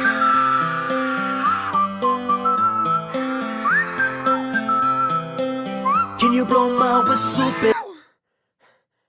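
Pop music plays.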